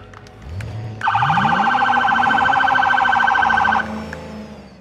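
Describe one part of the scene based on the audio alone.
A police siren yelps in rapid, loud pulses.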